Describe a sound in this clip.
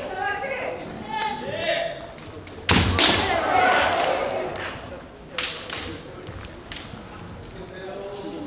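Fencers shout loud battle cries that echo through a large hall.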